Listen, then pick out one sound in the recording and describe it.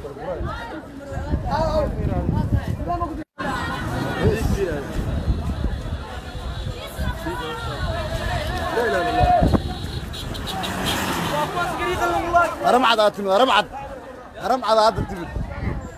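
A crowd of men shouts and talks excitedly nearby, outdoors.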